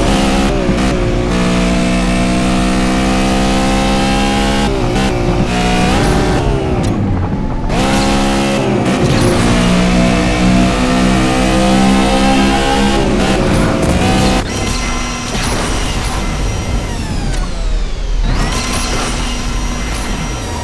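A nitro boost whooshes.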